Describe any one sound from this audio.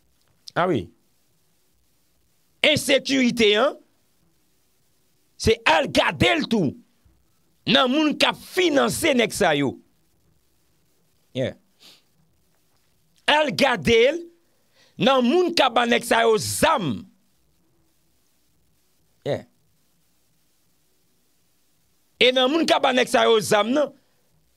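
A young man speaks into a microphone with animation, close up, in bursts with pauses.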